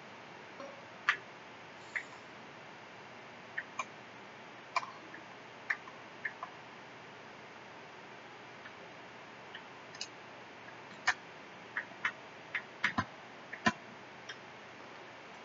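Short electronic bleeps sound now and then.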